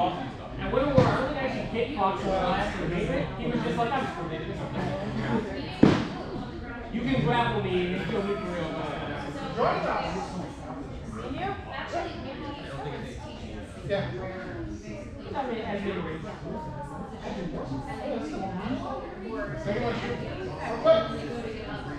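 Wooden practice swords knock together sharply.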